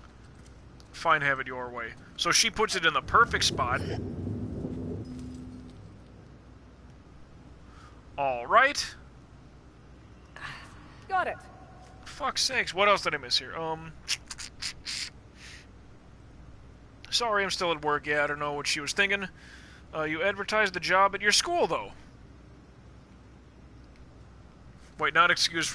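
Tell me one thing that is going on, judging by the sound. A man talks with animation into a close microphone, in bursts with pauses.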